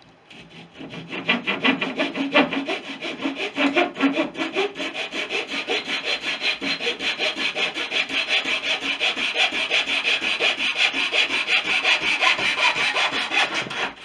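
A hand saw cuts wood with quick, steady strokes.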